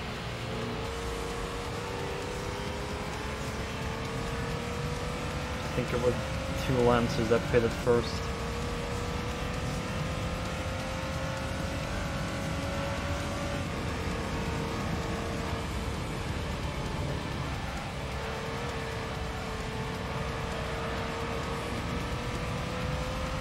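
A racing car engine whines steadily, rising in pitch as it speeds up.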